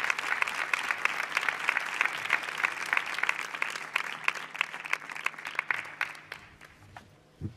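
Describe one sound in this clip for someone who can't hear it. An audience applauds in a large echoing hall, and the clapping fades away.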